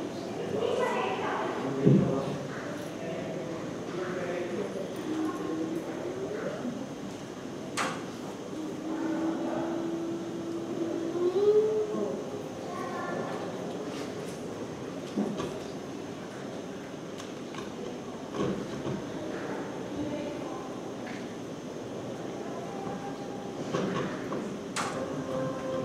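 An elderly man speaks with expression, close by.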